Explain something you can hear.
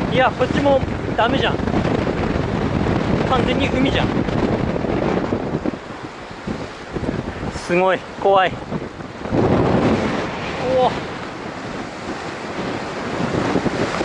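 Waves crash and wash over rocks nearby.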